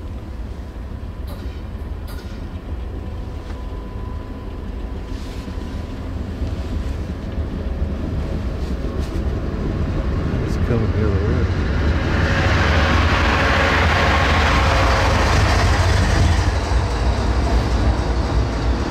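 A vehicle engine rumbles low and steadily nearby.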